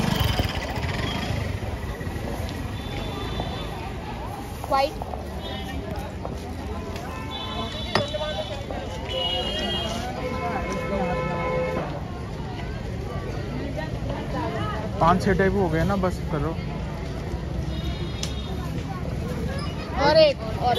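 Plastic bags rustle as powder is scooped.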